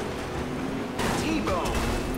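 Metal crunches as cars smash together.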